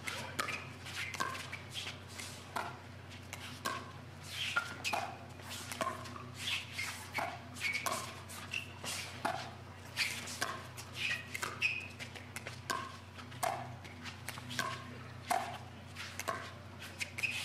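Shoes squeak on a hard court.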